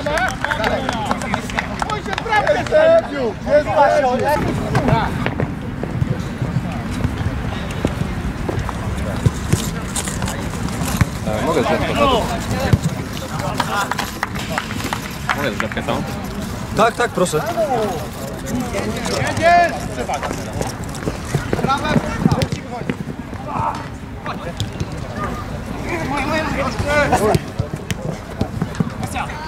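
Men shout to each other outdoors, some distance away.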